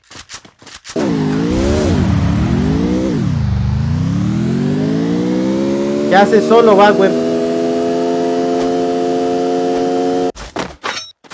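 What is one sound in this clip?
A car engine revs and roars, rising in pitch as it speeds up.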